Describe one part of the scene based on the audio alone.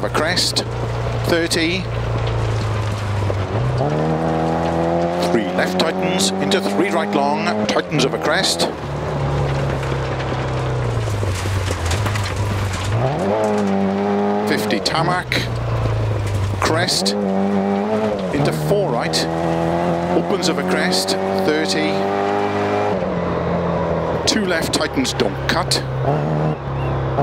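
A small car engine revs hard, rising and falling in pitch as gears change.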